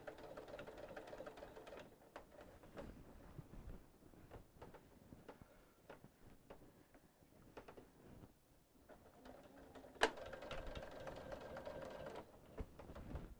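A sewing machine hums and stitches in short bursts.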